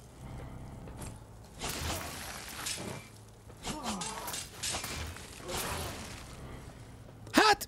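Electric zaps and crackling blasts burst in a fast fight.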